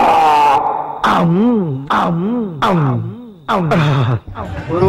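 A man speaks loudly and with animation, his voice rising and falling.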